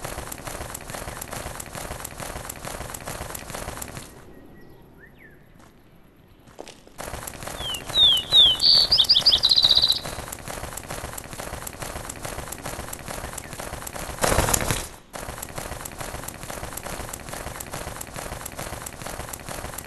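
A bird's wings flap in a fast, steady rhythm.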